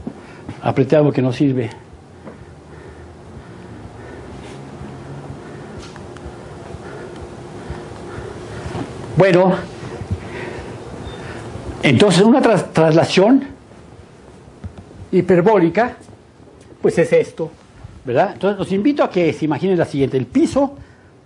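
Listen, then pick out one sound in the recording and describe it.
An elderly man lectures calmly in a room with some echo, heard through a microphone.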